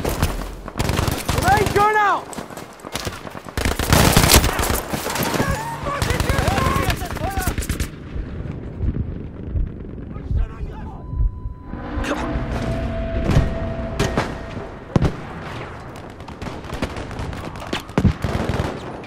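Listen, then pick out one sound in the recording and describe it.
Gunshots crack repeatedly, close and loud.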